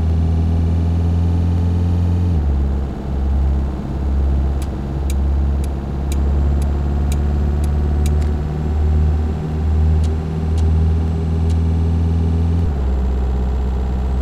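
Tyres rumble on a snowy road.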